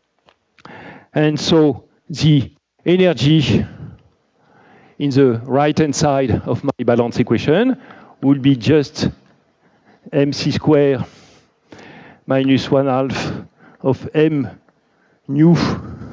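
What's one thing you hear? A man lectures clearly through a microphone.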